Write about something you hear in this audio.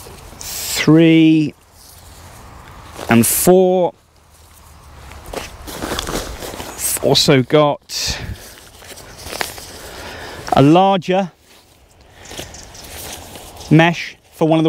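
A man talks calmly and close by, in bursts.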